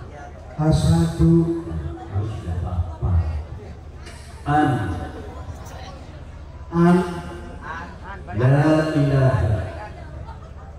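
A woman speaks into a microphone, heard through loudspeakers.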